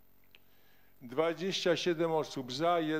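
A man speaks into a microphone, heard through loudspeakers in a large hall.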